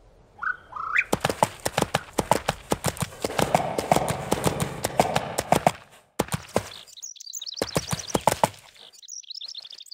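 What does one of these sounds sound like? A horse's hooves clatter quickly on the ground.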